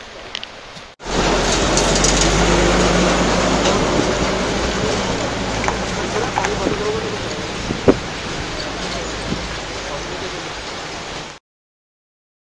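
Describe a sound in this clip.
A crowd of men talks outdoors.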